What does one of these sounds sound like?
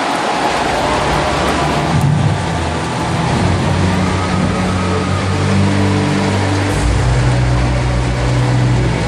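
Slow music plays through loudspeakers in a large echoing hall.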